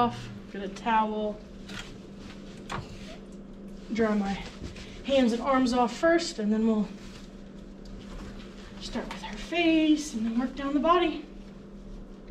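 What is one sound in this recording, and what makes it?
A woman talks to a dog in a high, animated voice.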